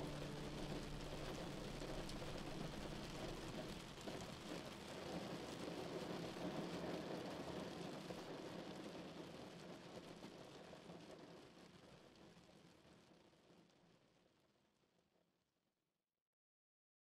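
Rain patters steadily against a window and slowly fades away.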